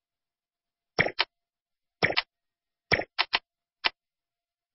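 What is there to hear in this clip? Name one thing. Short sharp clicking effects tick several times.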